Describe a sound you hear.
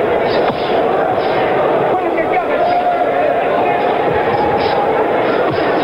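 Boxing gloves thud against a body now and then.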